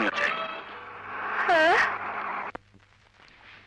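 A woman speaks softly up close.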